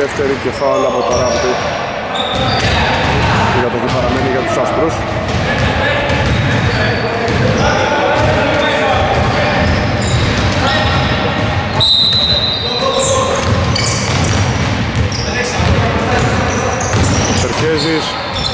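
Men call out to each other across an echoing gym.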